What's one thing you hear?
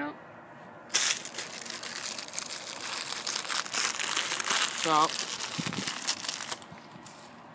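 Chip bags crinkle and rustle loudly.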